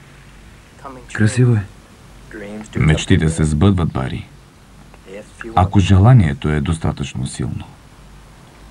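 A man speaks in a low, calm voice nearby.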